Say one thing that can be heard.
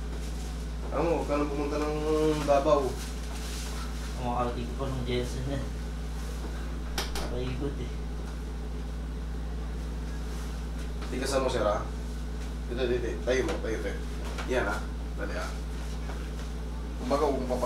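A man speaks nearby in short, calm phrases.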